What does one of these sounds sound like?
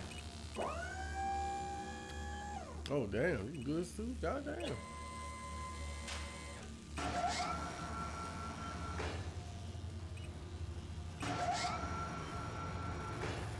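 A lift motor whines, rising in pitch each time it starts moving.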